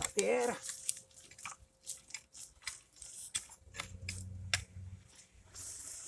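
A hoe scrapes and chops into dry soil.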